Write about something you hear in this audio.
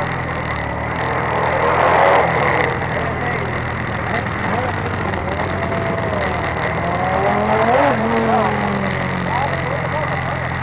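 Other motorcycles ride past, their engines revving up and down.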